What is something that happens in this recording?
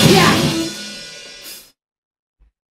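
A band's final loud chord with electric guitars and cymbals rings out and fades.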